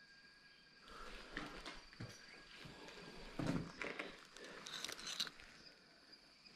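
Grass rustles as a hand pushes through it.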